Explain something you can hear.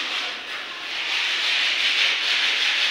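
A man scrubs a wet floor with a brush.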